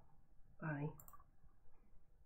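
A young woman speaks briefly, close to a computer microphone.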